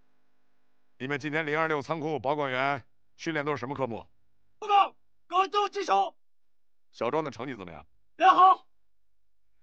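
A middle-aged man speaks firmly and loudly.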